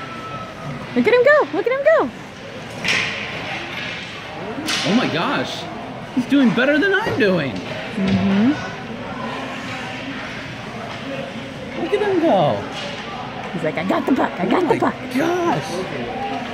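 Children's voices call out in a large echoing ice rink.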